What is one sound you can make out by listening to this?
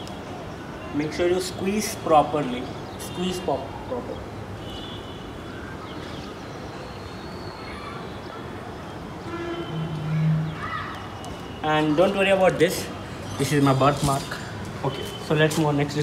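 A young man speaks calmly and close by, outdoors.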